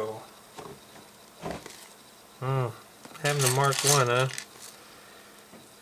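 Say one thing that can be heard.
Small plastic bricks clatter as a hand sorts through them.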